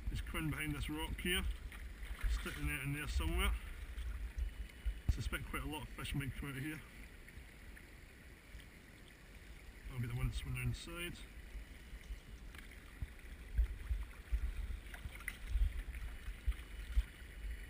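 Water trickles in a shallow stream.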